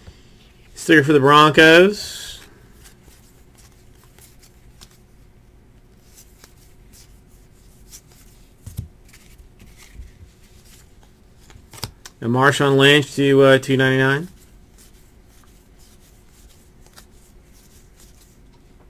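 Trading cards rustle and slide softly against each other.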